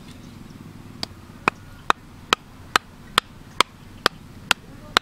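A hammer strikes the top of a plastic pipe, driving it into mud.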